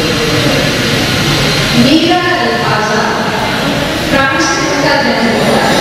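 An elderly woman speaks steadily through a microphone.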